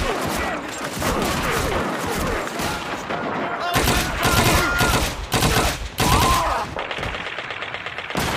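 A submachine gun fires in short bursts.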